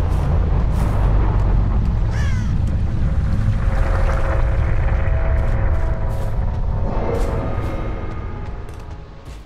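Heavy footsteps tread steadily over ground and grass.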